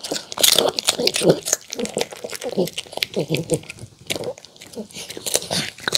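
A dog laps and smacks its lips.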